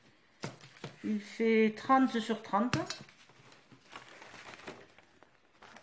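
A plastic stencil sheet rustles and flexes in hands.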